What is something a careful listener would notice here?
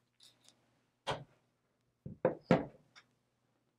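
Paper shapes are set down on a table with soft taps.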